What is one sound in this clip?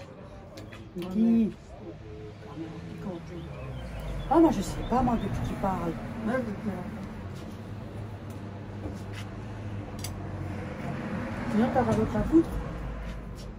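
A middle-aged woman talks casually close by.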